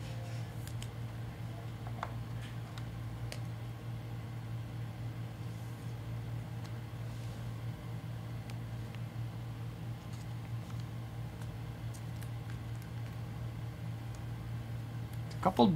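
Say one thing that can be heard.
Plastic card sleeves crinkle and click as hands handle them.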